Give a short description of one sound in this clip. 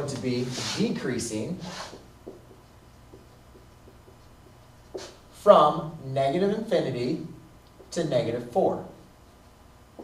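A man talks calmly, as if teaching.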